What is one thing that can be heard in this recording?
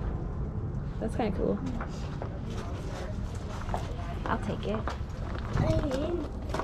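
A woman speaks close by.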